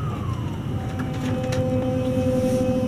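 An electric express train pulls away with a rising motor whine.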